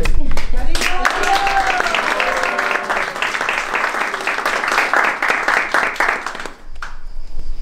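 A group of people sing together.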